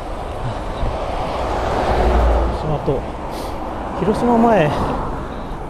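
Road noise and wind rush steadily from a moving vehicle.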